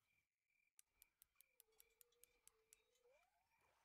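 A fishing reel clicks rapidly.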